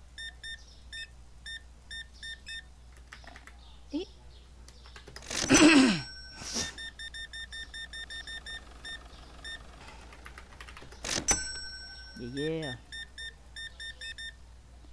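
A checkout scanner beeps in short quick bursts.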